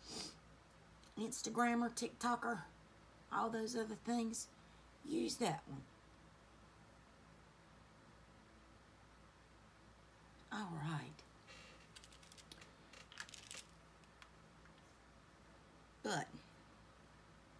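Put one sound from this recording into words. A woman talks calmly and close by, in short bursts with pauses.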